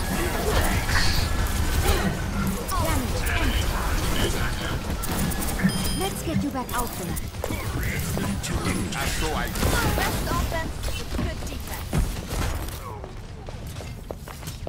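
A pistol fires in quick shots.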